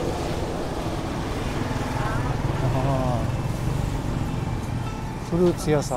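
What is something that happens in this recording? A motorbike engine hums as it passes along the street.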